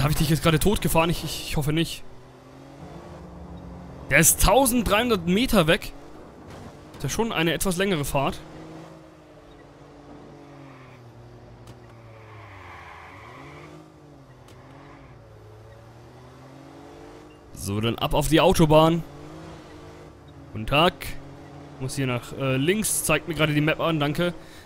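A car engine hums and revs steadily, rising and falling in pitch.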